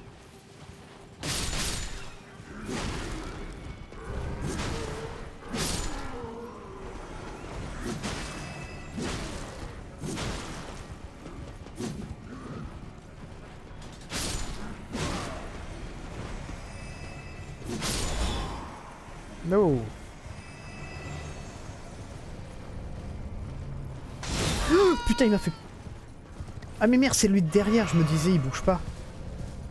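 Hooves thud as a horse gallops.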